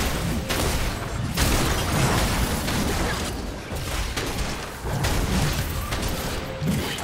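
Game spells burst and explode in quick succession.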